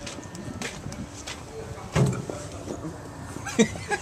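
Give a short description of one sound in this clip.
A man knocks on a glass door.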